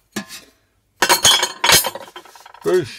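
Metal parts clatter as they are handled.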